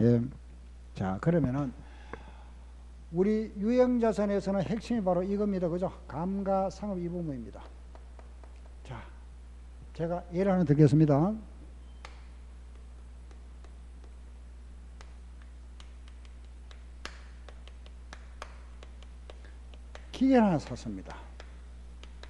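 A middle-aged man lectures calmly into a microphone, with pauses.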